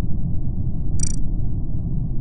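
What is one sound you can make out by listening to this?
A short electronic chime rings out as a new message arrives.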